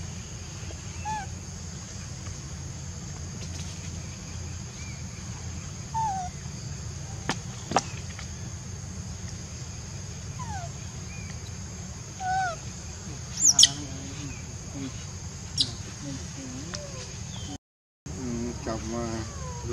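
A baby macaque squeals and whimpers.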